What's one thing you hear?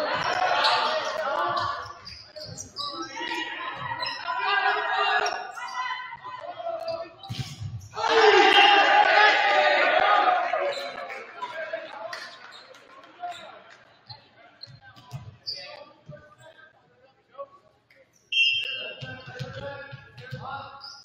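Young men shout and call to each other in a large echoing gym.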